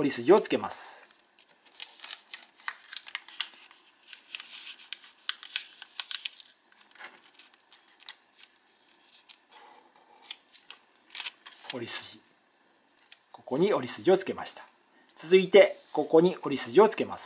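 Paper rustles and creases as it is folded by hand.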